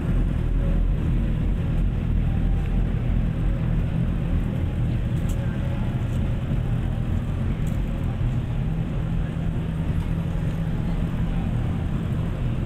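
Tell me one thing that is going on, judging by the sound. Traffic rumbles steadily along a busy street outdoors.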